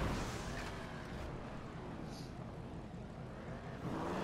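A car lands with a thud after a jump.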